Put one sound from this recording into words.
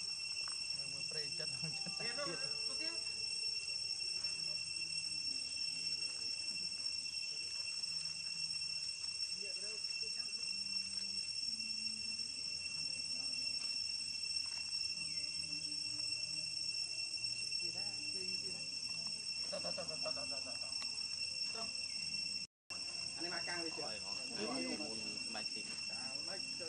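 A baby monkey squeals in short, high cries.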